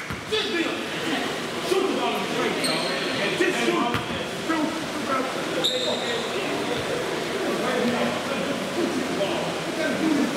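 Young men shout and talk across a large echoing gym.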